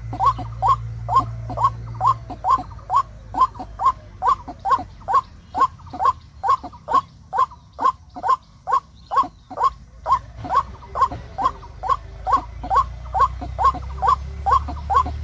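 A bird calls over and over with short, rapid chirps.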